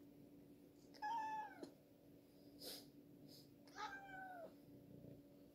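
A cat meows loudly close by.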